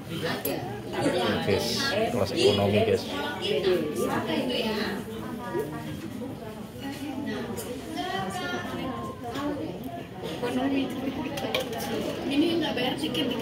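Several women talk and chatter close by.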